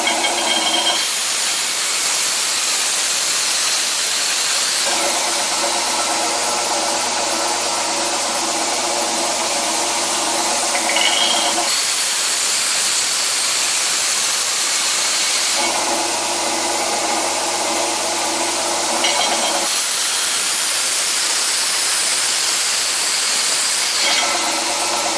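A belt grinder grinds metal with a loud harsh hiss, in repeated passes.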